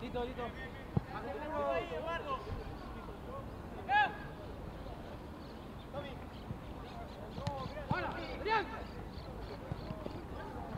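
Young men shout and call out to each other across an open playing field.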